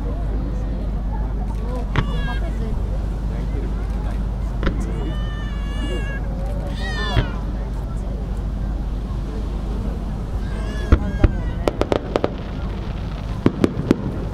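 Fireworks burst with sharp bangs and crackles, far off outdoors.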